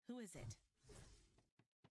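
A blade swings through the air with a sharp whoosh.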